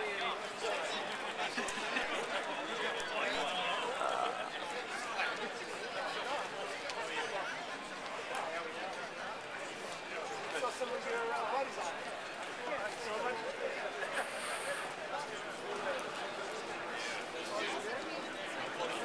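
Footsteps of many people shuffle along pavement.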